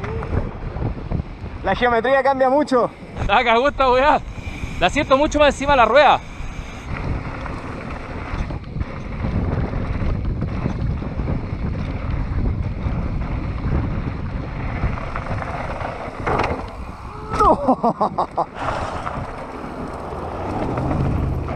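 Wind buffets loudly past while riding fast outdoors.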